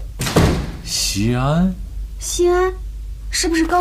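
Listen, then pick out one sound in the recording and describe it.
A woman speaks urgently nearby.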